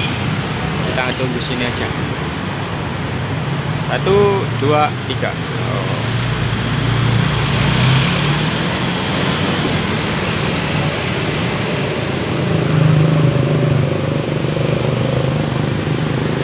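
Motorbikes buzz past.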